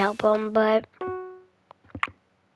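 A short chime rings as a level is finished.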